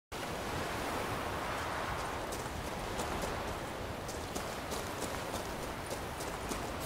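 Waves wash steadily against a shore.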